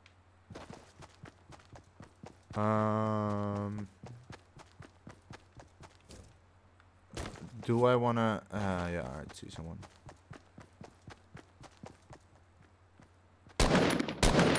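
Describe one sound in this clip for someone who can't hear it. Quick footsteps patter across grass.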